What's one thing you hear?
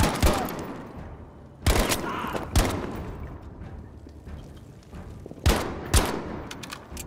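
Rifle shots crack loudly, with echoes off buildings.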